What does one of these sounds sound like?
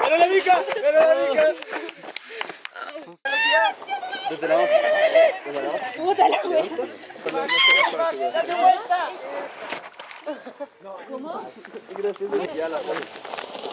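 Young people chatter and shout outdoors with animation.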